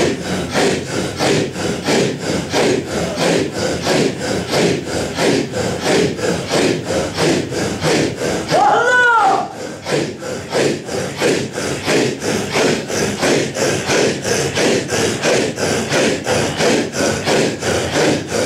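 A large group of men chant together in rhythmic unison, in an echoing room.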